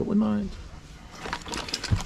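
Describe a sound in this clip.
Metal tools clatter as a hand rummages through a toolbox.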